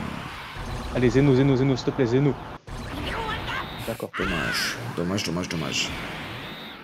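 A young man talks excitedly into a microphone close by.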